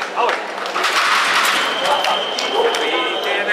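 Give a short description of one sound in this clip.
A young man shouts loudly in triumph.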